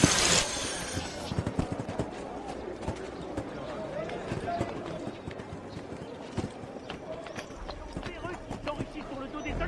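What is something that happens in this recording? Quick footsteps patter across a roof.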